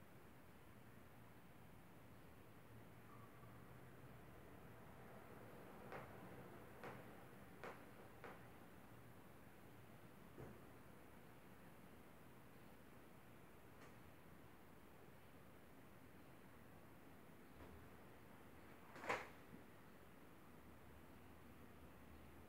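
Fabric rustles softly as a shirt is handled.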